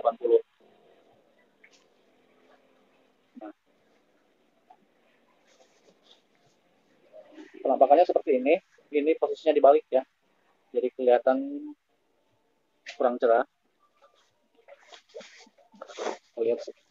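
Cloth rustles as it is unfolded and shaken.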